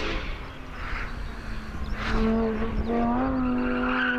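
Tyres screech on tarmac.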